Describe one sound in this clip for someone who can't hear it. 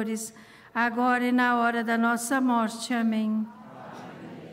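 An elderly man chants slowly into a microphone, his voice echoing as it fades.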